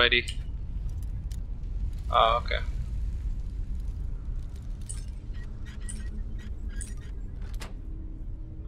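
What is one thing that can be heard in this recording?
A metal lockpick scrapes and clicks inside a lock.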